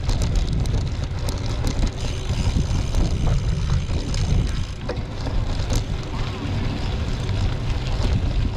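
Wind buffets a microphone while moving along outdoors.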